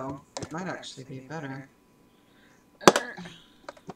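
A plastic box clatters against a table.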